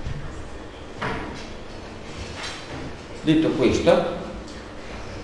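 A man speaks calmly in a room.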